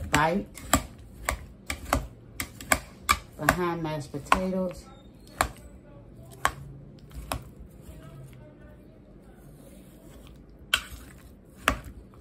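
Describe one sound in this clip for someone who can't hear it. A metal spoon clinks and scrapes against a metal pot.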